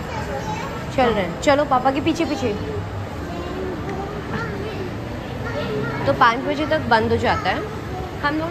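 A young child talks with excitement close by.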